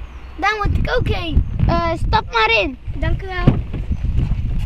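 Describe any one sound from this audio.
Children speak with animation close by.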